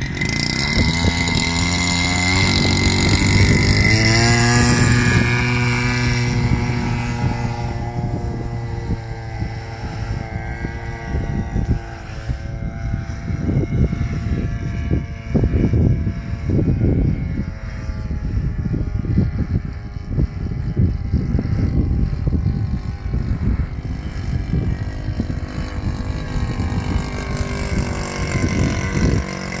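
A model airplane's engine buzzes loudly, rising in pitch as it takes off, then drones on as the plane flies off into the distance.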